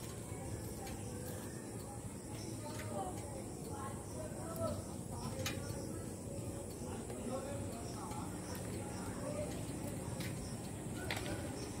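Motorcycle engines idle nearby with a steady low rumble.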